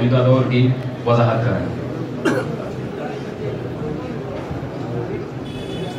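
A crowd of men murmurs and talks in the background.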